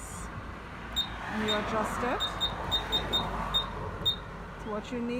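A machine beeps several times with short high beeps.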